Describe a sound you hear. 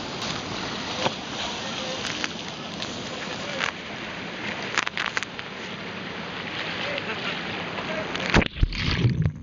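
Water splashes as people swim.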